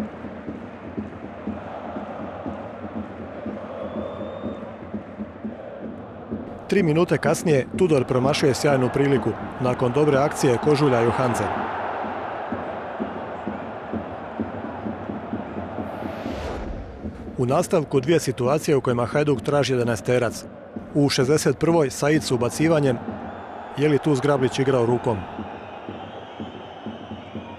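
A large crowd murmurs in the distance.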